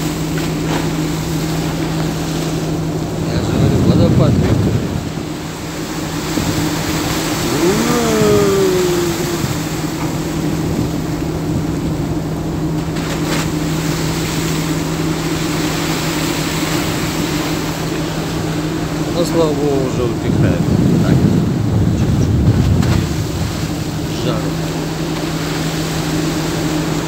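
A ship's engine hums steadily.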